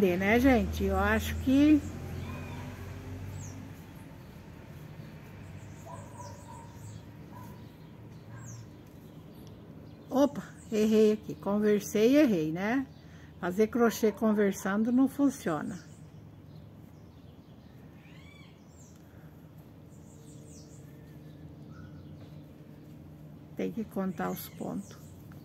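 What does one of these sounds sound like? Yarn rustles softly as it is pulled through a crochet stitch.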